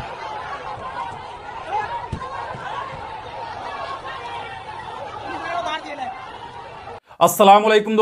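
A large crowd shouts and clamours outdoors.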